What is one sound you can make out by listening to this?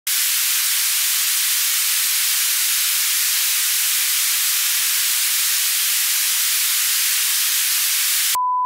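Loud static hisses steadily and evenly, then cuts off abruptly.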